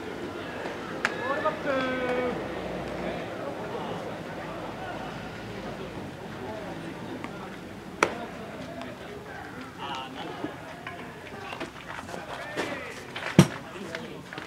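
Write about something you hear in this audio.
A baseball smacks into a leather glove with sharp pops.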